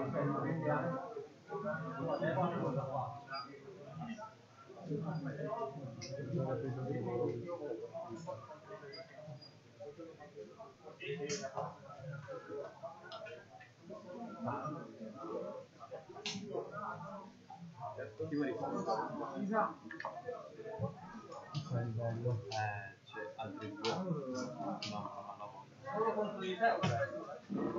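Young men talk with each other nearby.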